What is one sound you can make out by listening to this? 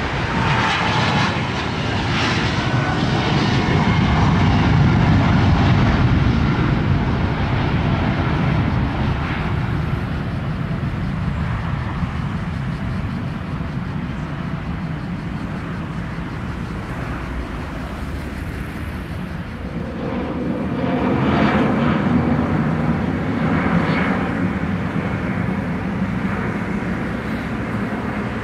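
A jet airliner roars loudly as it climbs away overhead.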